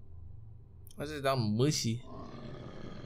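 A man exclaims loudly and briefly into a close microphone.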